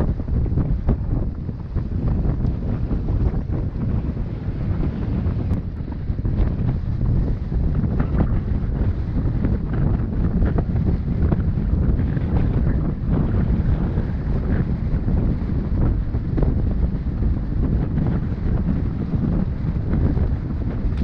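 Wind buffets a microphone, loud and rumbling, outdoors.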